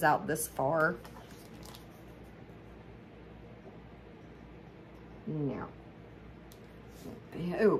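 A sheet of plastic film rustles as it is unrolled.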